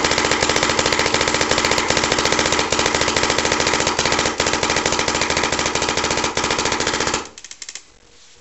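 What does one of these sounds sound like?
A paintball gun fires a rapid, steady burst of sharp pops, then stops.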